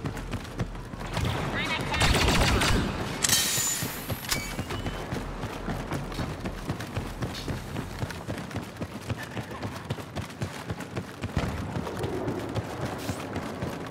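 Boots patter quickly on a hard floor as someone runs.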